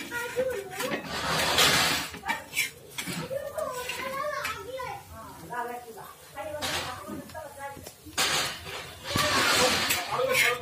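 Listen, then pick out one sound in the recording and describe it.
Oil sizzles on a hot griddle.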